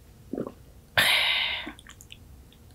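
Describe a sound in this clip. A young woman sips a drink from a small glass close by.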